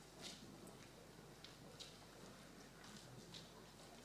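Footsteps tread on a wooden floor in a large echoing hall.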